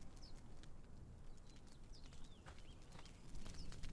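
Footsteps crunch on sand.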